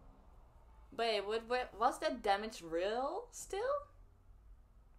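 A young woman speaks brightly, close to a microphone.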